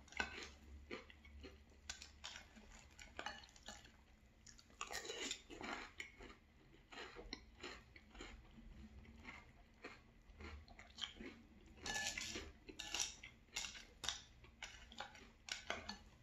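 Dry cereal rustles as a spoon stirs through it.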